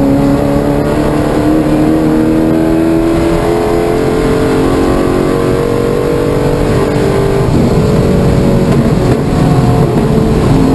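A car engine roars loudly from inside the cabin, its pitch slowly falling and then rising again.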